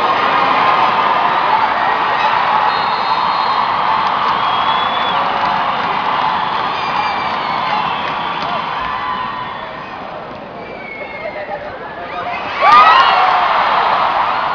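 A large crowd chatters and cheers loudly in a big echoing hall.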